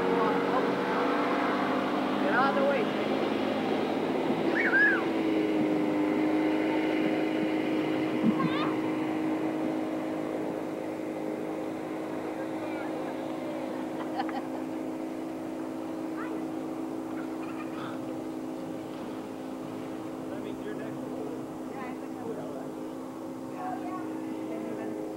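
A motorboat engine drones as it pulls away across the water.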